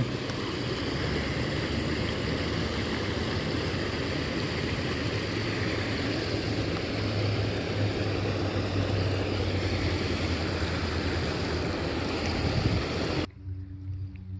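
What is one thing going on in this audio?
A small waterfall splashes and rushes close by.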